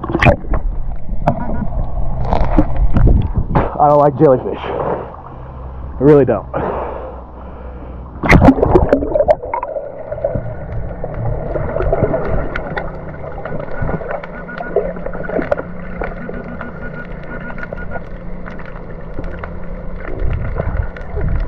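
Air bubbles gurgle and rumble underwater.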